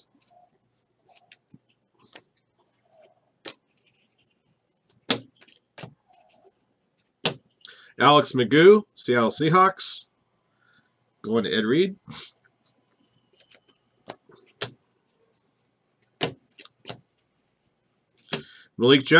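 Trading cards are flicked and shuffled by hand.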